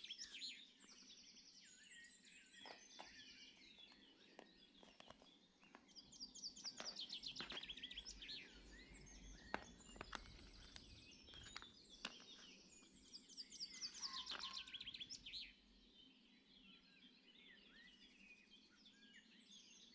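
A plastic box clicks and rattles as it is handled.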